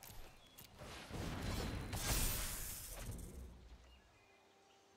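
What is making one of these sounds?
A magical whooshing game sound effect plays.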